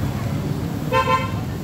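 A car horn honks briefly.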